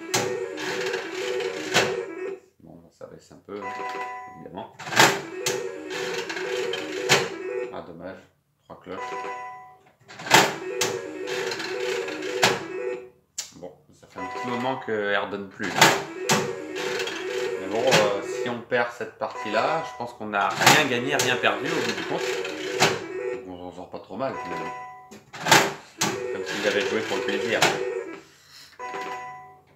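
A slot machine plays a chiming electronic jingle.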